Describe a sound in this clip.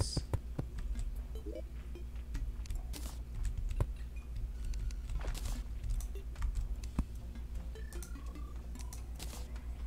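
Soft game clicks and pops sound as blocks are placed and menus open.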